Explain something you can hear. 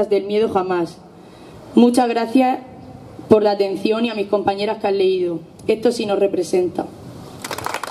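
A young woman speaks clearly through a microphone outdoors.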